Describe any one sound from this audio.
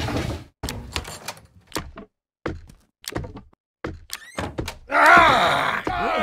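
A cabinet door creaks open and bangs shut.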